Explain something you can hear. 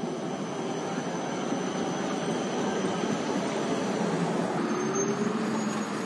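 A car engine rumbles as the car pulls away.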